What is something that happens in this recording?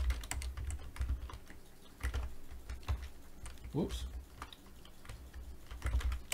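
Keys clatter on a keyboard in quick taps.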